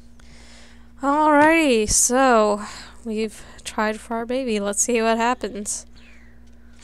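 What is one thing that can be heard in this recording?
A young girl talks with animation into a close microphone.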